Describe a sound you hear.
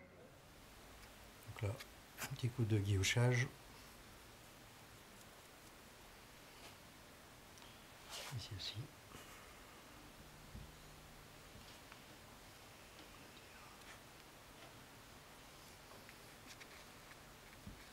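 A small tool scrapes softly against clay.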